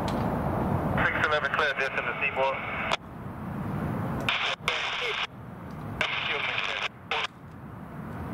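A train horn blares in long blasts.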